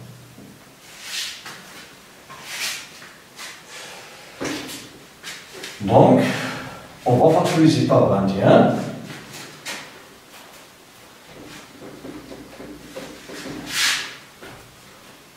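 A board eraser rubs and squeaks across a whiteboard.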